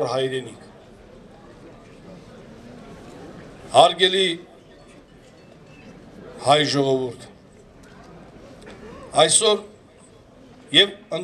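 A man speaks loudly into a microphone in short bursts, heard through a loudspeaker outdoors.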